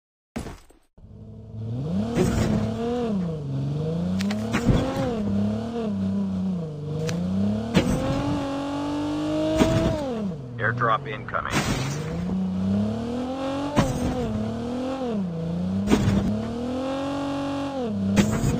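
A video game car engine revs up and down.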